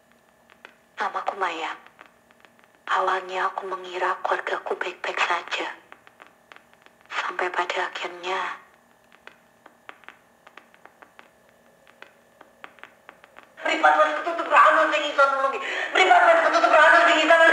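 A recorded voice speaks from a cassette player's loudspeaker.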